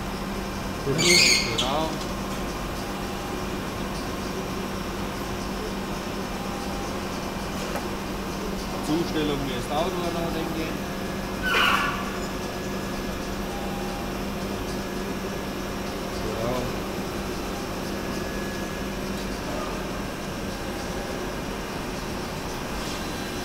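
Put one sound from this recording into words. A grinding machine hums steadily.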